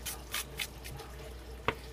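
A fingernail scratches at the coating of a scratch-off lottery ticket.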